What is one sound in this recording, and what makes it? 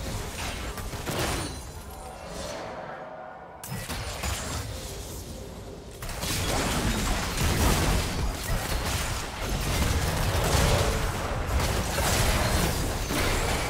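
Game spells burst and crackle in a fast, busy fight.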